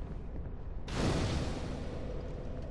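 A fire flares up with a sudden whoosh.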